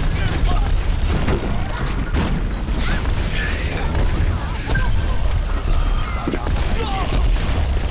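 Gunshots fire rapidly in quick bursts.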